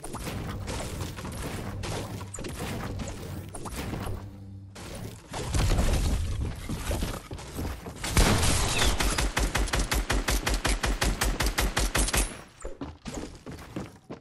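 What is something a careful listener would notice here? A pickaxe strikes wooden walls in quick repeated blows.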